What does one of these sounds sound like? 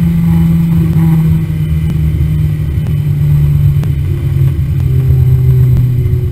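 A race car engine drones loudly at steady high revs, shifting pitch slightly.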